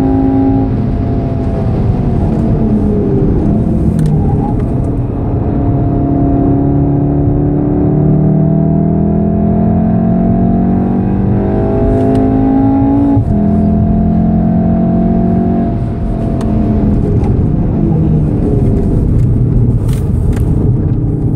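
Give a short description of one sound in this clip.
Tyres rumble on wet tarmac.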